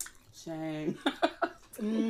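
A young woman laughs close to the microphone.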